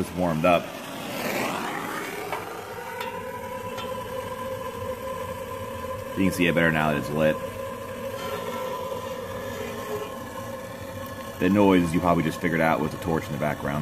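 A gas torch roars and hisses steadily.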